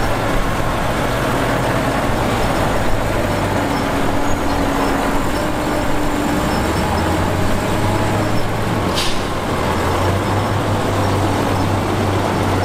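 A diesel truck engine idles and rumbles steadily.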